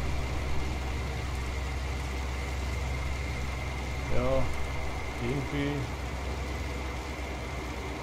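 A vehicle engine hums low and steadily.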